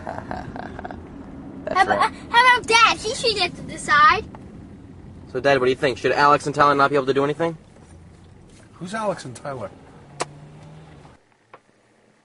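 A car engine hums steadily from inside the car.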